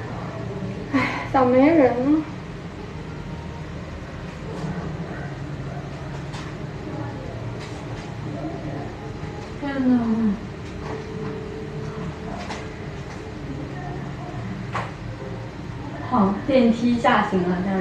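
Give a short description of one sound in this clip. A young woman speaks playfully through a mask, close by.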